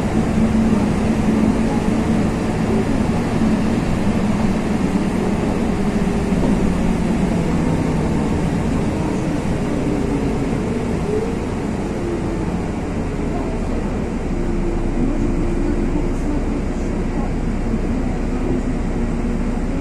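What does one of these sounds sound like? Tyres hiss steadily on a wet road.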